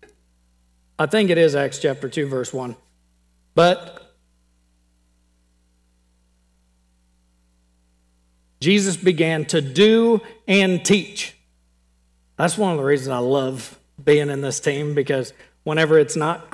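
A man speaks with animation through a microphone, in bursts with pauses.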